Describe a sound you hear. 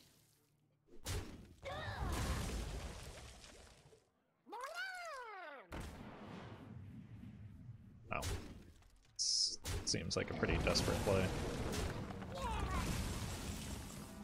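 Video game sound effects whoosh and chime.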